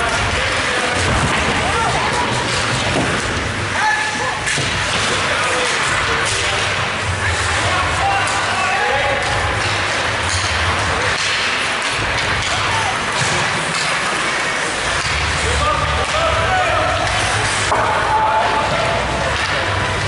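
Young players shout across the ice.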